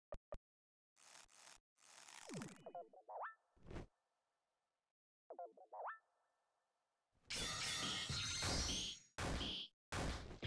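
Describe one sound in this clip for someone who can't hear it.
Game attack sounds swoosh, zap and crash.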